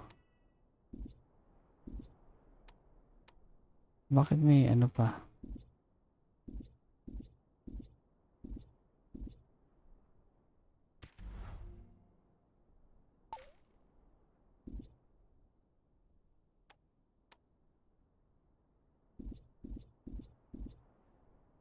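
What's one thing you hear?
Soft game menu clicks sound now and then.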